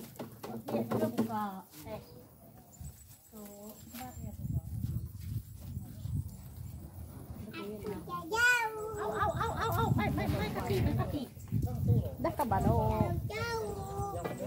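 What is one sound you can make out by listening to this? Women talk and laugh nearby with animation.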